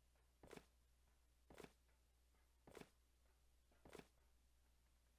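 Explosive charges are placed with short clicks.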